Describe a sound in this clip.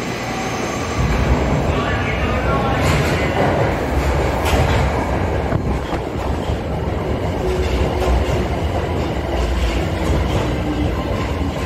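A subway train rumbles into an echoing station and rushes past close by.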